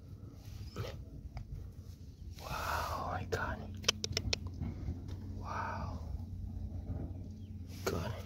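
Fingers brush through loose soil.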